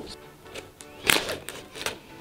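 A knife slits tape on a cardboard box.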